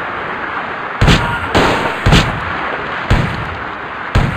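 A shotgun fires several loud shots.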